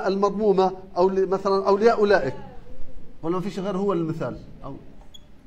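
A man speaks clearly and calmly, close by.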